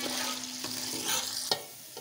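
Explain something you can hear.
Liquid pours into a pot with a splash.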